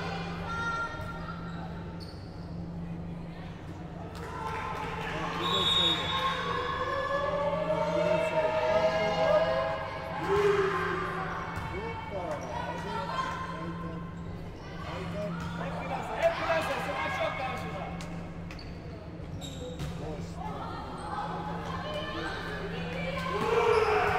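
A volleyball is struck with a sharp smack.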